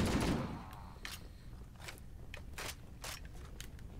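Gunshots snap sharply several times.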